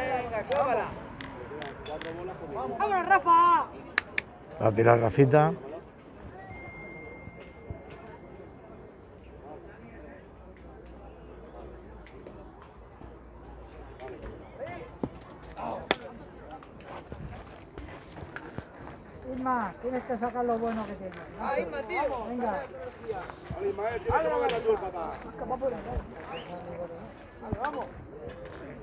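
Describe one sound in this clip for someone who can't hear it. Men talk and call out nearby with animation.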